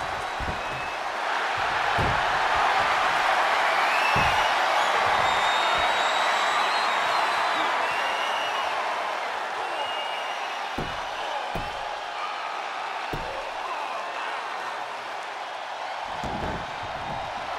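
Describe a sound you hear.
Bodies thud onto a mat.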